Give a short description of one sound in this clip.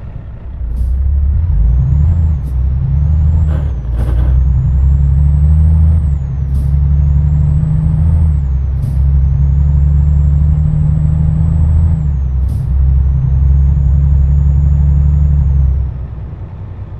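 A truck engine drones loudly, rising in pitch through several gear changes.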